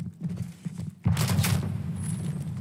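A gun fires a short burst at close range.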